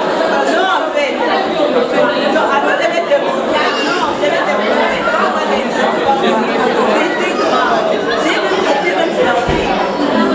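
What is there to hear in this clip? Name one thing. A crowd of men and women chatter all at once in an indoor room.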